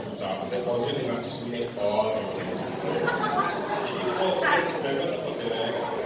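A man preaches with animation through a microphone and loudspeakers in a large echoing hall.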